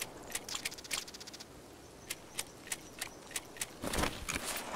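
Items click sharply as they are moved.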